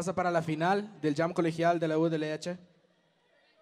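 A young man speaks through a microphone.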